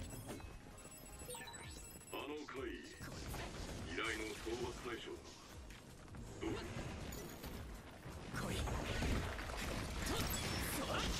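Swords slash and clang in a fight.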